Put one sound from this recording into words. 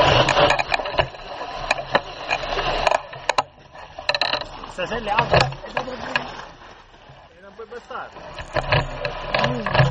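Bicycle parts rattle and clatter over bumps.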